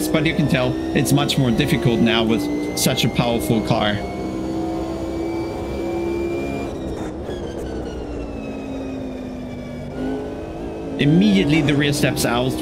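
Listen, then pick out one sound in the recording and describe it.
A racing car engine drones and shifts pitch as it speeds up and slows down.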